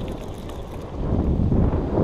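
A fishing reel clicks as it is cranked.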